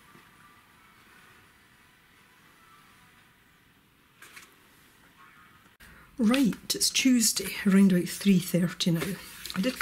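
Stiff paper pages rustle as a small book is opened and handled.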